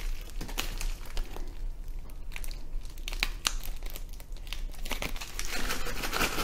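Scissors snip through a plastic package in short clicks.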